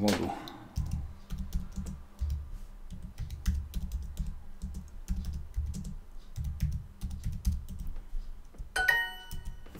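Keyboard keys click rapidly as someone types.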